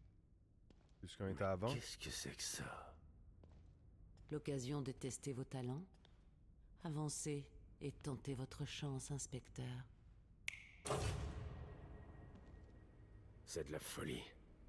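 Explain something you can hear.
A young man speaks into a close microphone with animation.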